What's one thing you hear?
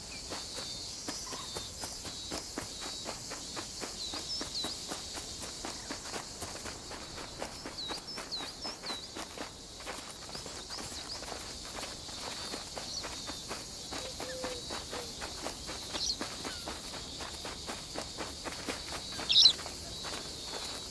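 Quick footsteps patter along a dirt path.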